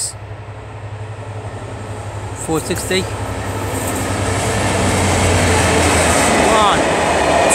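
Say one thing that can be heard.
A diesel freight locomotive approaches and rumbles loudly past.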